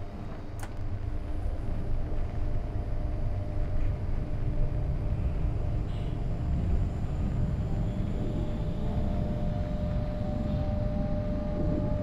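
A train rumbles along the tracks, growing louder as it picks up speed.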